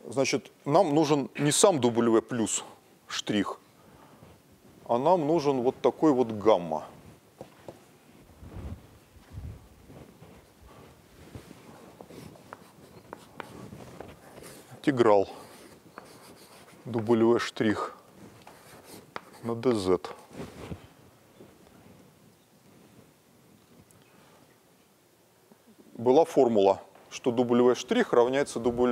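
A middle-aged man lectures in a large hall.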